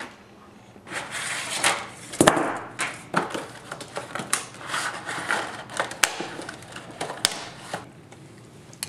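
Aluminium foil crinkles and rustles.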